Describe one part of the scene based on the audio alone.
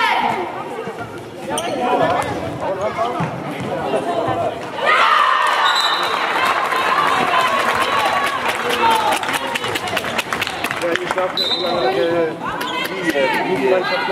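Young women players shout and call out in a large echoing hall.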